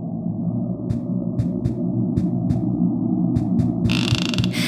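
Small footsteps tap on a hard floor.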